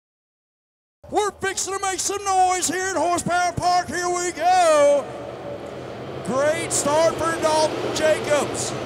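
Race cars roar around a dirt track.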